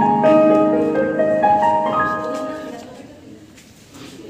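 Instrumental music plays over loudspeakers in a hall, with notes falling in pitch.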